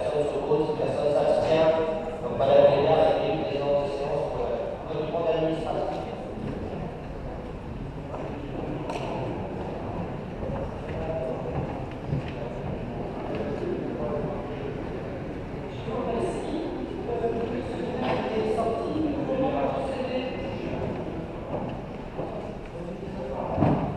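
A man speaks calmly over a microphone in a large echoing hall.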